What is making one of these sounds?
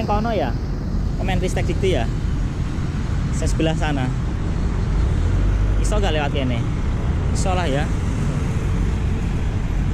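Motorbikes drone past nearby.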